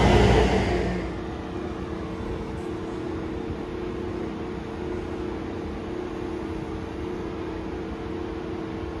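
An electric train hums steadily nearby.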